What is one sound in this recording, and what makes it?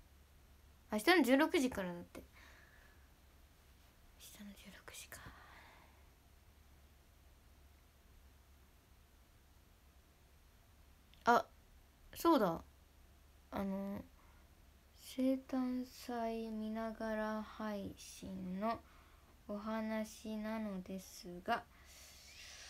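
A young woman speaks softly and playfully close to a microphone, with long pauses.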